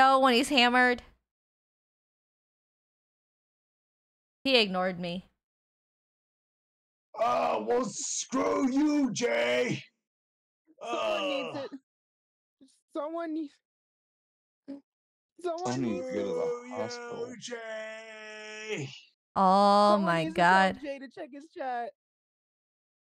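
A young woman speaks with animation into a close microphone, in bursts with pauses.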